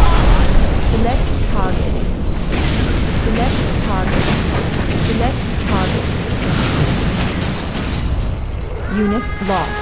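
Explosions bang again and again.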